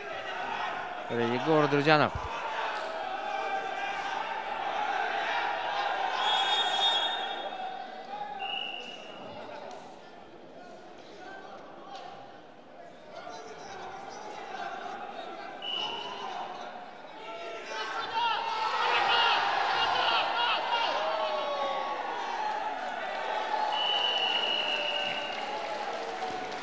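A large crowd murmurs and cheers in an echoing hall.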